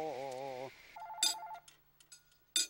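A railway crossing bell rings.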